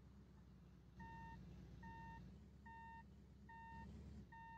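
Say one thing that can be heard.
A reversing alarm beeps repeatedly.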